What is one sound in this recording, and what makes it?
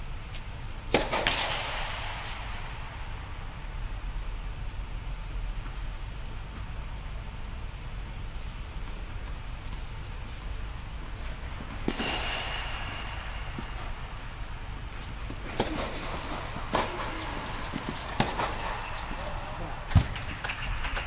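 A tennis ball is struck with a racket, again and again, in a large echoing hall.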